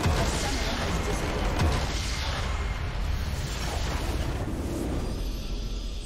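A magical blast whooshes and crackles loudly.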